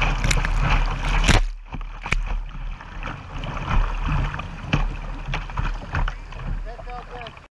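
Paddle strokes splash into the water.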